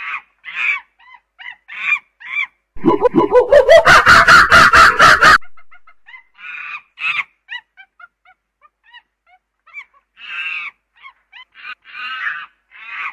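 A chimpanzee hoots and screams loudly.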